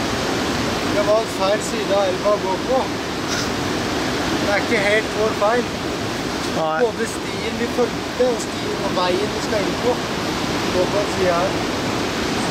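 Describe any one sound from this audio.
A boy talks calmly outdoors, close by.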